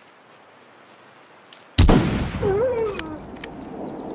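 A rifle bolt clicks open and shut.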